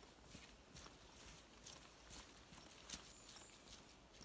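Footsteps tap softly on a wooden walkway.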